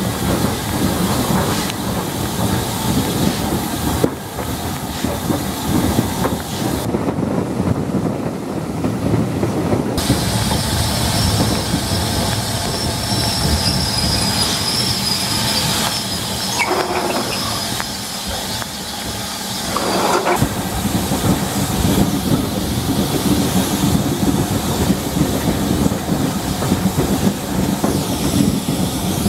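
Wind buffets loudly past the open train window.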